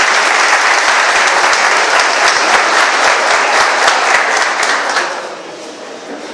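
A crowd applauds loudly in a room.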